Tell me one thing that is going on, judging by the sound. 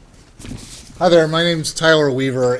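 A middle-aged man speaks into a microphone in a calm, measured voice.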